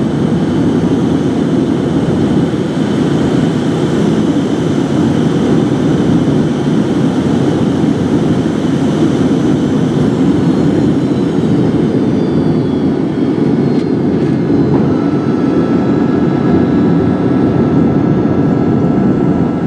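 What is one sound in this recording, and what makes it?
A jet engine roars loudly and steadily close by, heard from inside an aircraft cabin.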